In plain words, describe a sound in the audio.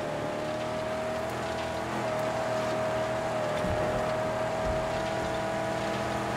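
A car engine roars steadily.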